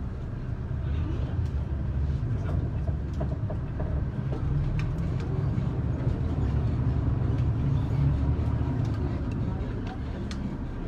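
A bus engine roars louder for a while, then settles.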